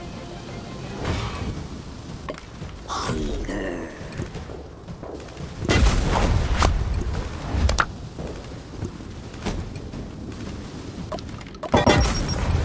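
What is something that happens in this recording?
Game explosions and blasts boom in bursts.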